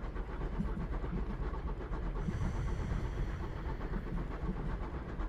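A train rolls along rails with a low rumble.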